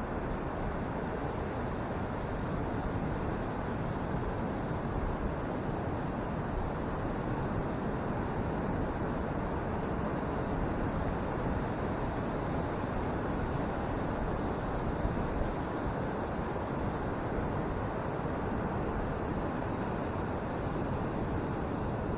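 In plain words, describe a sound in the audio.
Ocean waves break and wash steadily onto the shore.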